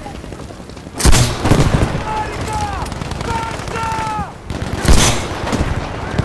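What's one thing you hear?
Loud explosions boom nearby.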